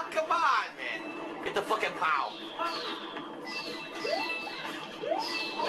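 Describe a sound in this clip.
Short bright game sound effects chime and swoop.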